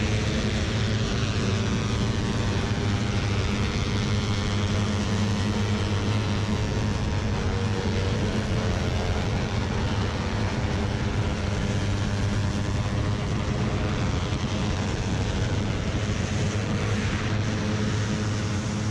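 Motorcycle engines roar steadily at high speed.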